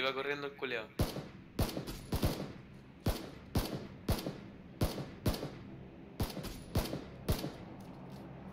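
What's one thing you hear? Rifle shots ring out sharply, one after another.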